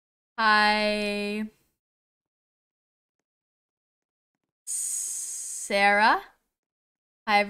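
A young woman calls out with animation close to a microphone.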